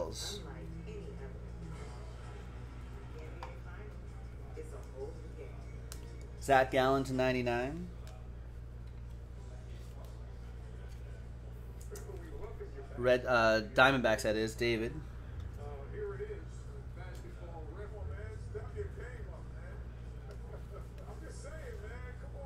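Trading cards shuffle and rustle in hands.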